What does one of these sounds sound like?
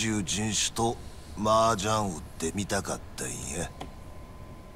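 A man speaks in a low, gruff, teasing voice close by.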